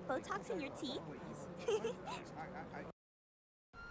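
A young woman talks playfully, close by.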